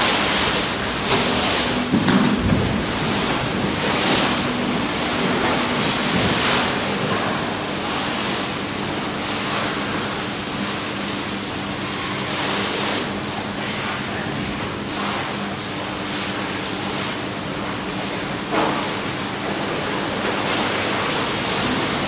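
A group of adults recites prayers together in a softly echoing hall.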